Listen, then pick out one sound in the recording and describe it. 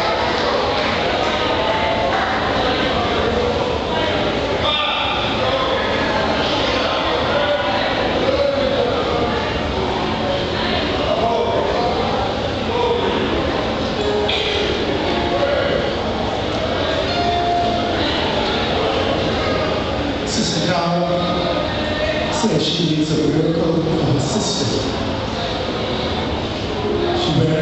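A man speaks through loudspeakers, echoing in the hall.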